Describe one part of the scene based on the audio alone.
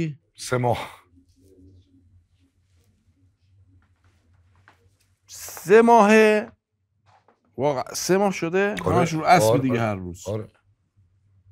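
A man speaks with feeling at close range, his voice rising.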